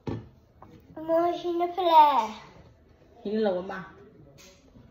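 A small child talks close by in a high, lively voice.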